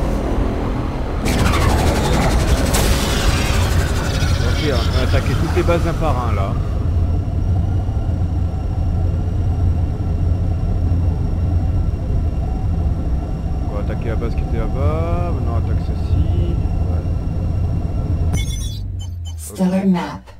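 A spaceship engine roars with a deep, steady rumble, then cuts out.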